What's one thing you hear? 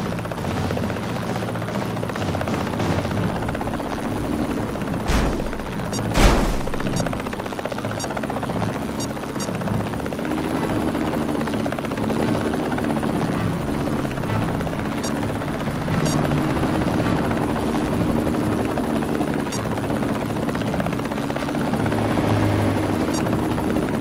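A helicopter's rotor thumps steadily as it flies.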